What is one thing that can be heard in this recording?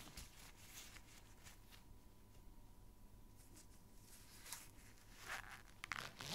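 Rubber gloves brush and squeak softly close to a microphone.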